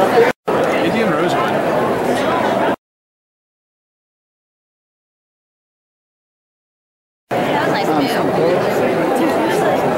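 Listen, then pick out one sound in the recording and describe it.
A crowd chatters loudly in a large echoing hall.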